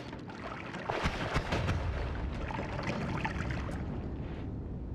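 A loud fiery explosion booms and crackles.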